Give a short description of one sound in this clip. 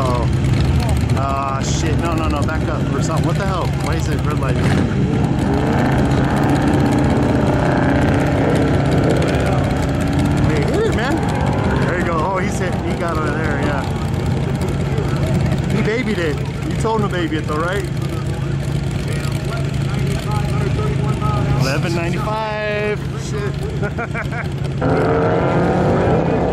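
A motorcycle engine idles and revs nearby.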